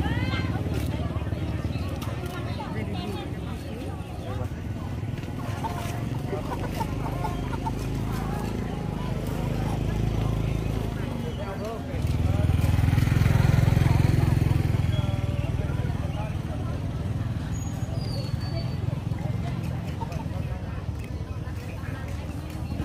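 A bustling crowd chatters in the background outdoors.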